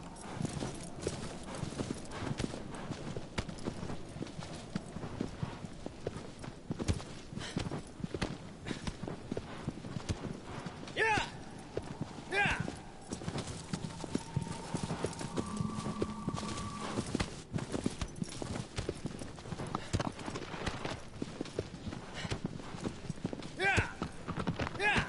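A horse gallops with rapid hoofbeats on grass.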